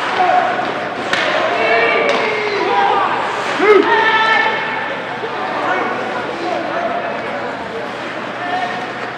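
Spectators shout and cheer in an echoing indoor rink.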